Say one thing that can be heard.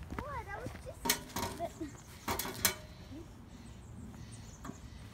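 A metal mailbox lid clanks and rattles as it is opened.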